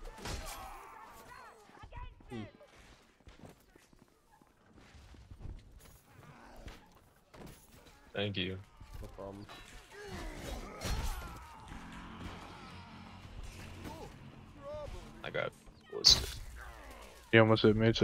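Blades clash and strike with sharp metallic clangs.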